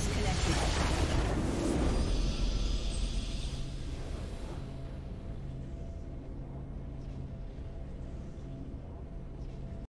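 A triumphant music swell rings out and slowly fades.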